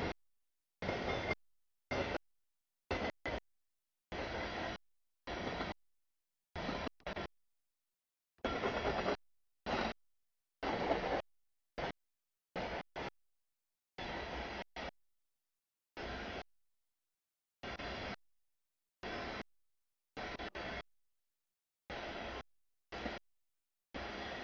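A long freight train rolls past close by, its wheels clattering over the rails.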